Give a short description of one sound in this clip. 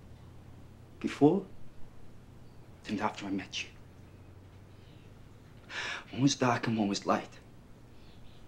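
A young man speaks in a low, tense voice, close by.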